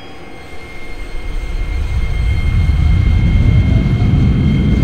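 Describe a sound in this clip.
A train's motor rumbles louder as the train starts moving.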